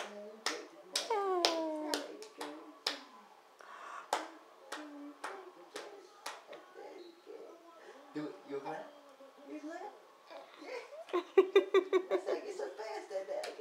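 A baby giggles and squeals.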